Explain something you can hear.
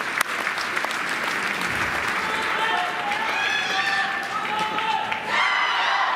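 A crowd applauds and cheers in a large echoing hall.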